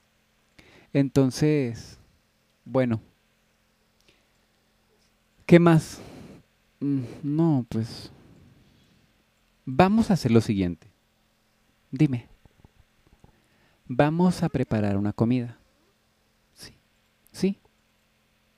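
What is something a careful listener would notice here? A young girl speaks hesitantly and softly in short phrases.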